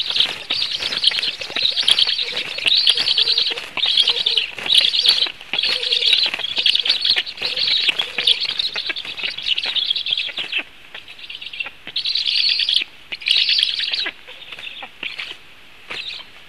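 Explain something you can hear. Young storks beg with loud, rasping, hissing calls in bursts.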